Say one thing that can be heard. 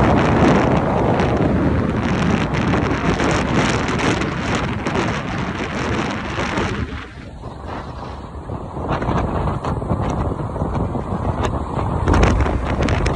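A motorcycle rides along a road.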